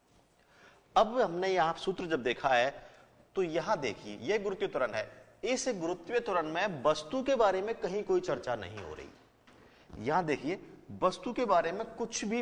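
A man speaks with animation into a microphone, explaining.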